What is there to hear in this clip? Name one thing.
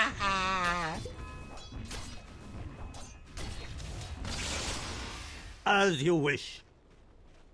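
Fantasy battle sound effects clash and crackle.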